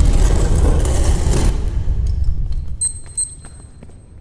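Footsteps hurry across a stone floor.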